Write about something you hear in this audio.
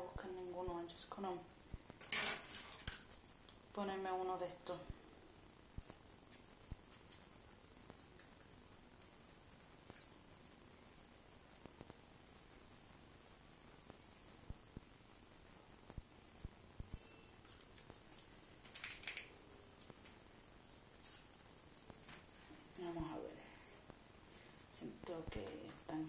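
Plastic hair rollers click and rustle as a woman sets them.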